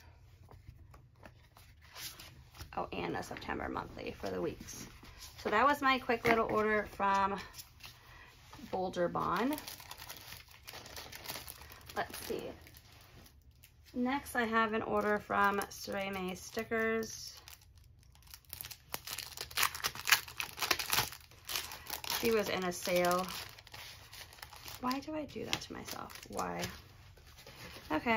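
Sheets of paper rustle and flap as hands handle them.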